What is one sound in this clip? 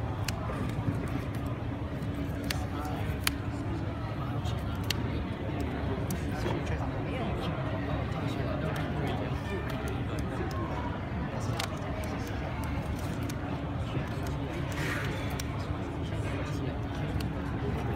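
Cards shuffle and riffle in hands.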